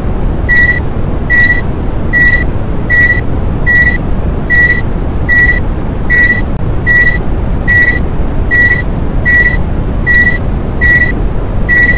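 An elevator motor hums and rumbles steadily as the car rises.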